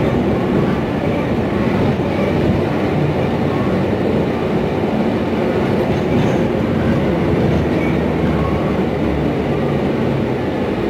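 The bus rattles and hums over the road.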